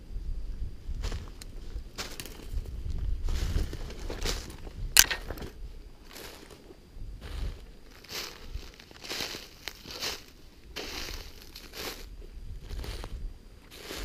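Footsteps crunch through snow and dry leaves.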